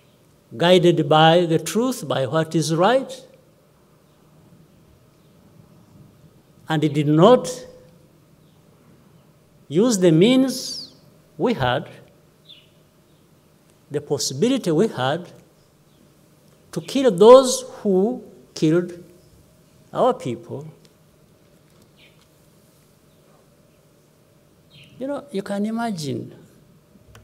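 A middle-aged man speaks calmly into a microphone, with long pauses between phrases.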